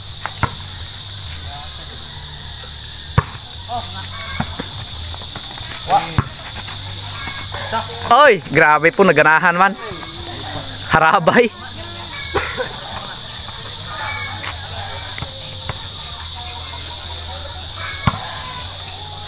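A ball thuds as players hit it.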